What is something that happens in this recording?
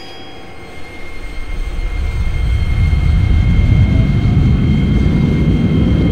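A train rumbles as it pulls away and gathers speed.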